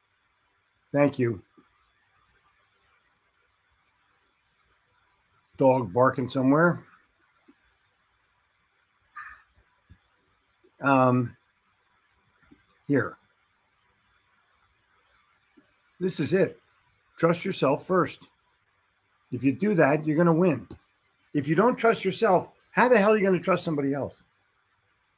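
An older man speaks with animation through an online call, pausing between phrases.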